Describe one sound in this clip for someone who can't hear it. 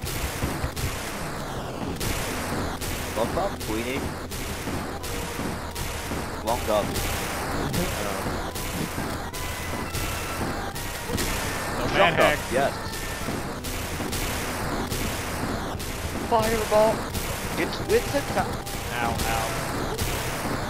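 Rapid magic shots fire over and over in quick succession.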